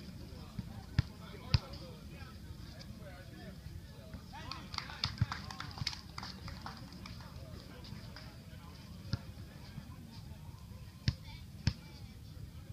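A basketball bounces on a hard outdoor court with sharp thuds.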